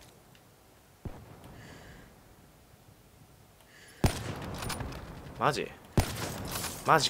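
A rifle fires sharp single shots.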